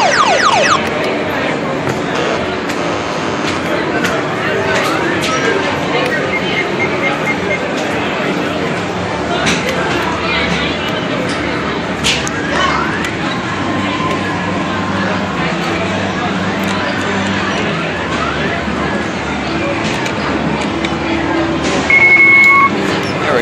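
Arcade machines play bright electronic jingles and chimes all around.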